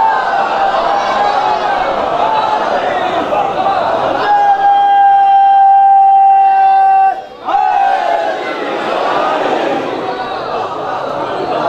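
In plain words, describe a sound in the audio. A man chants loudly through a microphone and loudspeakers, holding long notes.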